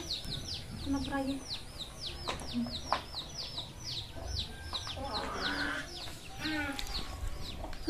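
Women talk quietly close by.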